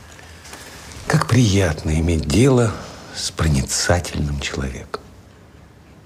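An older man speaks calmly and close by.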